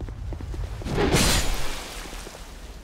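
A fireball bursts with a roaring whoosh.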